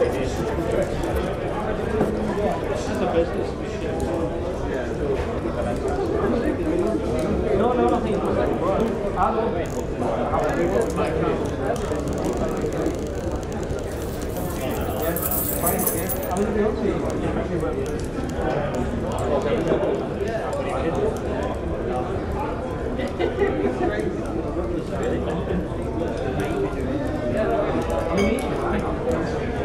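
A crowd of men and women chatters and murmurs all around in a busy room.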